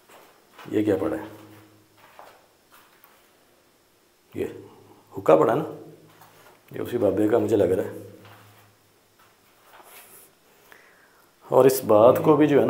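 A young man speaks in short bursts, close by, in a small echoing room.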